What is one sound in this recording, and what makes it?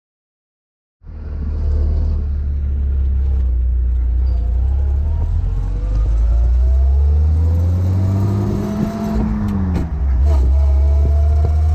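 The inline six-cylinder engine of a vintage open touring car accelerates.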